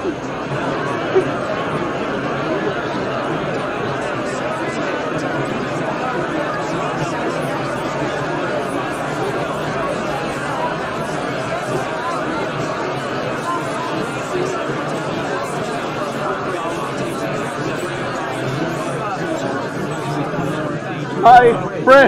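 A large crowd murmurs and prays aloud.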